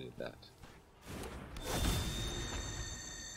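A game effect whooshes and rumbles.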